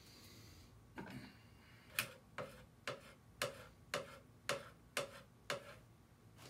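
A stick taps repeatedly on the rim of a metal paint can.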